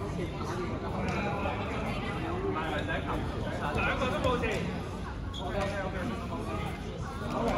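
Many young people talk and shout in a large echoing hall.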